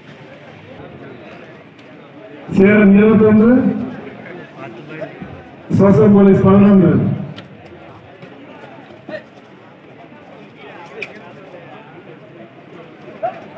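A large crowd murmurs in a big open space.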